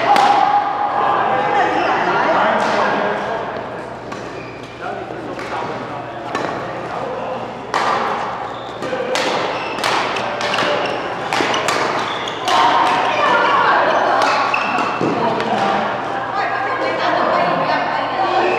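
Men call out and talk across the hall.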